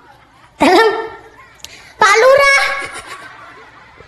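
A woman speaks loudly and with animation through a microphone.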